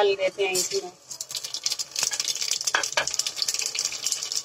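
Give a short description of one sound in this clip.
Hot oil sizzles and crackles in a pot.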